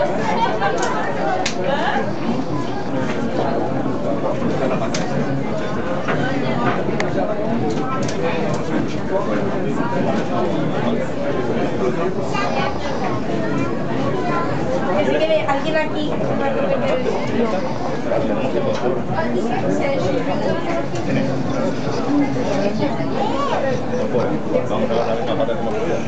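A small television hisses with static.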